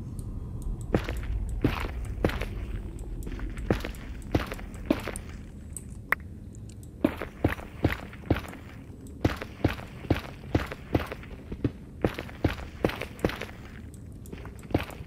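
A pickaxe chips at stone with quick, repeated crunching knocks.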